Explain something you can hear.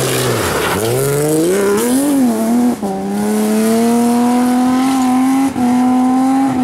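Gravel sprays and crunches under spinning tyres.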